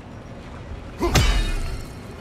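An axe strikes hard with a loud ringing crack.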